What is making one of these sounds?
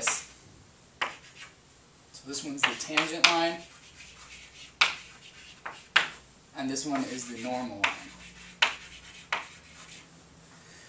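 Chalk taps and scrapes on a chalkboard.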